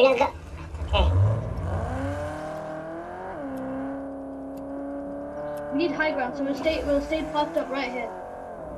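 A car engine starts up and then hums steadily as the car drives.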